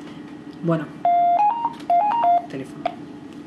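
A phone's keypad beeps as numbers are dialled.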